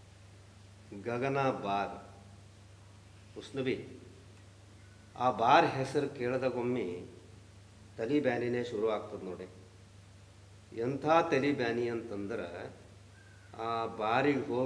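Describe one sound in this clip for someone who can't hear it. A man speaks slowly in short phrases.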